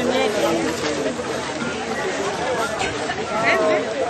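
A crowd of young people chatters and shouts nearby.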